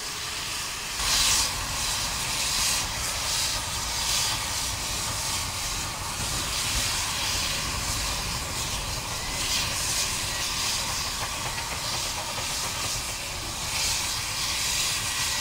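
A steam locomotive chuffs heavily in slow, rough bursts of exhaust.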